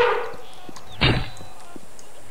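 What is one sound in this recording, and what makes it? A bowstring twangs as an arrow is released.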